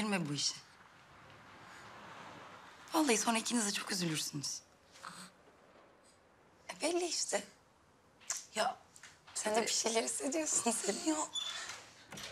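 A young woman speaks with a smile, close by.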